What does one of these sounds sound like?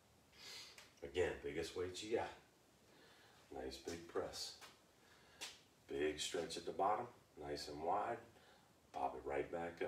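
A man speaks calmly and clearly nearby.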